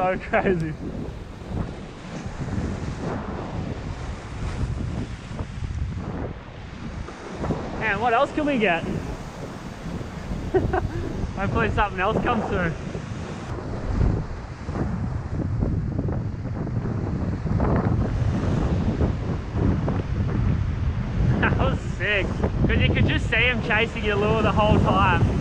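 Sea waves crash and wash against rocks close by.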